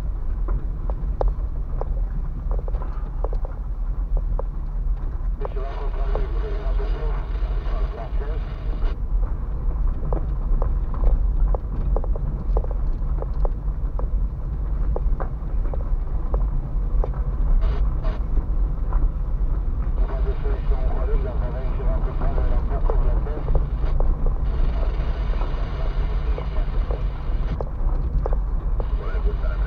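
Small stones knock against the underside of a car.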